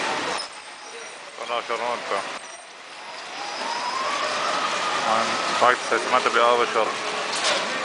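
A small motor cart hums and rattles past close by.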